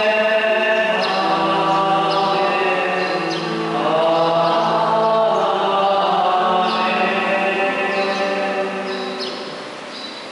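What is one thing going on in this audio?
A man chants in long sung notes through a microphone in an echoing hall.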